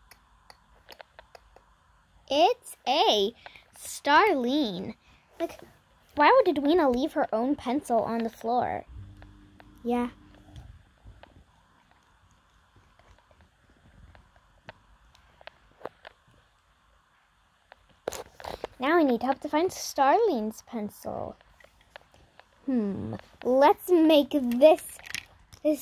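Small plastic toys are picked up and set down on a soft cloth.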